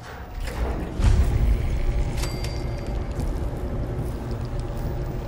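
A lift rumbles low and steadily as it moves.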